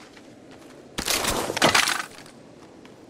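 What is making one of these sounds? A weapon is picked up with a sharp metallic clack.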